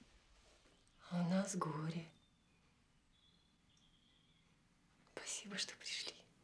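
A middle-aged woman speaks close by.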